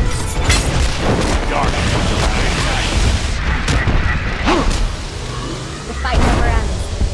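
Game weapons strike with sharp impacts.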